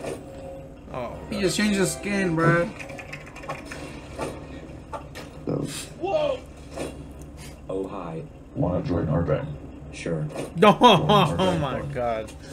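Two young men talk and laugh with animation, heard through a microphone.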